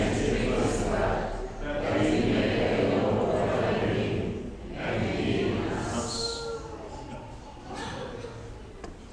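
A man recites a prayer through a microphone in an echoing hall.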